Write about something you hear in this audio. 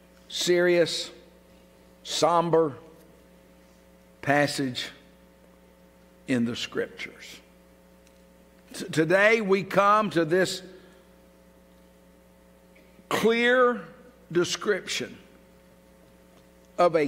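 A middle-aged man speaks slowly and deliberately through a microphone, with pauses, in a large echoing hall.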